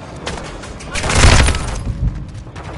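An explosion booms loudly.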